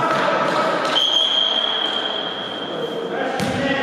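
A referee's whistle blows a long, steady blast.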